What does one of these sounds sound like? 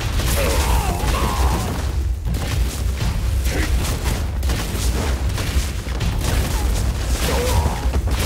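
Energy blasts burst and crackle in quick succession.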